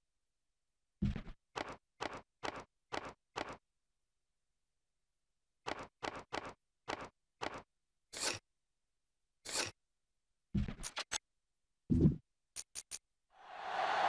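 Menu clicks sound in quick bursts.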